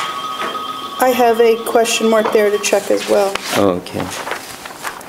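A woman speaks calmly, heard from across an echoing room.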